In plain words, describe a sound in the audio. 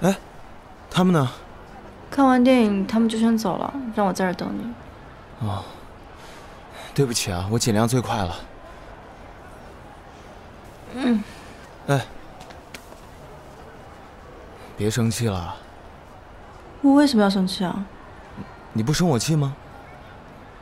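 A young man speaks calmly and nearby.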